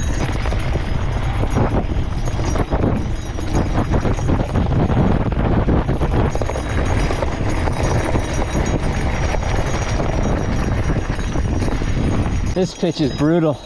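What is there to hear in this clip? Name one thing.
Wind rushes loudly past while riding downhill fast.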